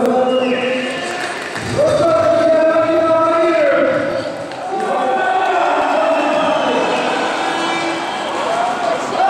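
A large crowd chants and cheers loudly in an echoing arena.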